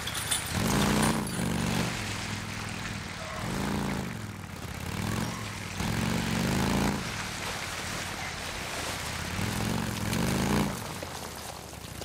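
A motorcycle engine rumbles and revs up and down repeatedly.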